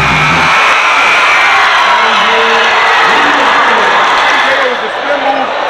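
A crowd cheers and yells loudly in an echoing hall.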